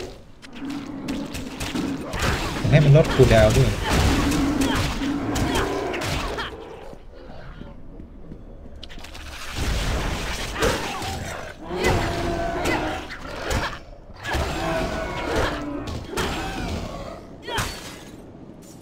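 Game combat sounds of magic blasts and blows crash and whoosh in bursts.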